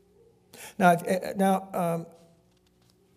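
An elderly man speaks calmly into a microphone in a reverberant hall.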